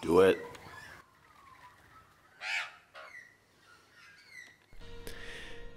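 Small birds chirp and squawk nearby.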